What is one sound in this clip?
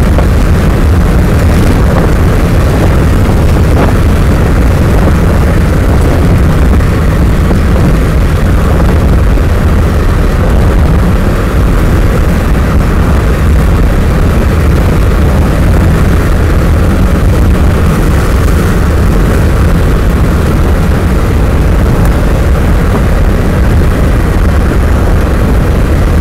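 Wind buffets loudly against the open window.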